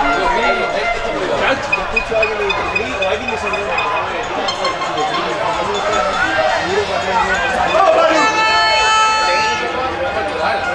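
Young players shout to each other across an outdoor pitch.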